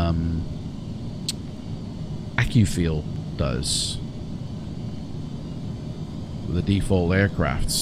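A man speaks casually into a close microphone.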